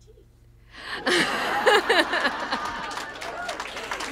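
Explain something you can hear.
A middle-aged woman laughs into a microphone.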